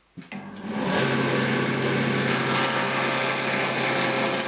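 A wood lathe hums as it spins.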